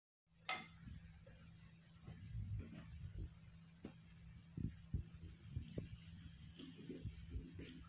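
Plastic jars bump and knock softly on a hard surface.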